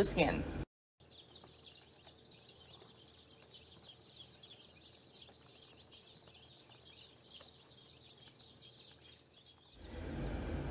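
A crowd of chicks peeps in a steady, high chatter.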